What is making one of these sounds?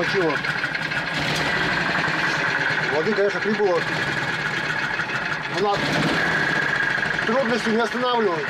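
A boat engine roars loudly and steadily.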